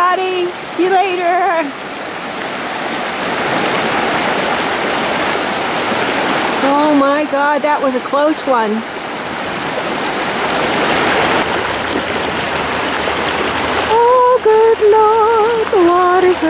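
A river rushes and splashes over rocks.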